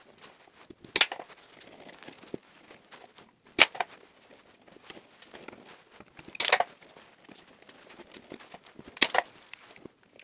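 Plastic parts click sharply as wires are snapped into terminals.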